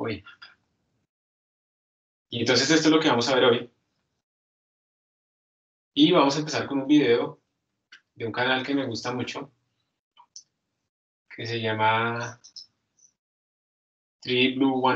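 A man speaks calmly in short phrases, heard through an online call.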